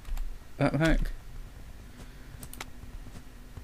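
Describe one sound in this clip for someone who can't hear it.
A short interface click sounds as a menu opens.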